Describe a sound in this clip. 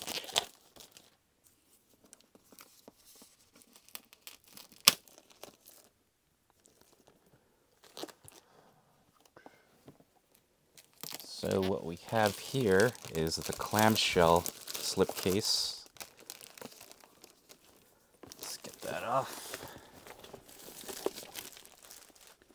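Plastic wrapping crinkles and rustles as hands handle it.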